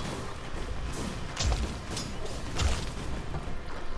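Weapons clash and magic blasts burst during a fight.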